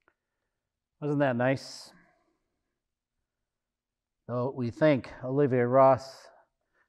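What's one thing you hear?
An older man speaks calmly into a microphone, with pauses between phrases.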